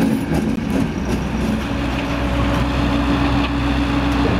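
A diesel engine hums steadily.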